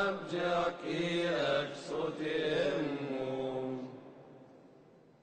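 A man chants through a loudspeaker in a large echoing hall.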